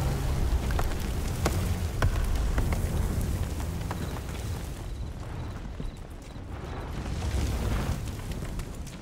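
Explosions rumble low and heavy in the distance.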